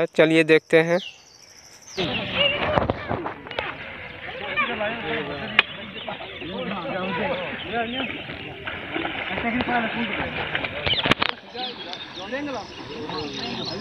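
Water splashes as men wade and pull a net.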